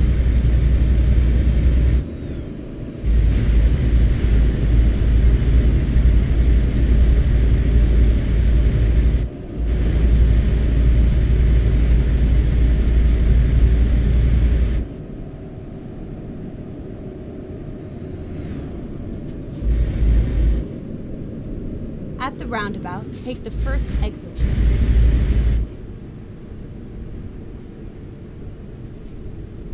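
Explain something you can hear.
A truck engine drones steadily, dropping away and surging again as it changes speed.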